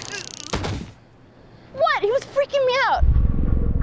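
A woman cries out in fear.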